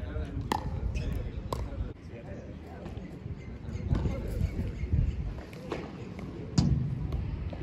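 Paddle rackets hit a ball with sharp pops.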